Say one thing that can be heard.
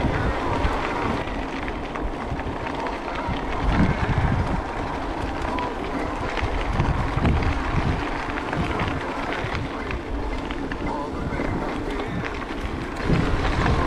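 Bicycle tyres crunch and rattle over a dry dirt track.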